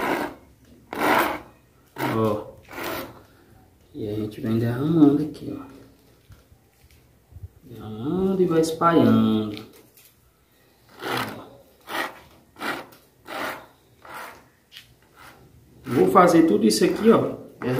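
A plastic spreader scrapes across a flat surface.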